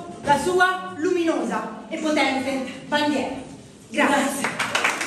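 A young woman sings in a strong operatic voice in an echoing stone room.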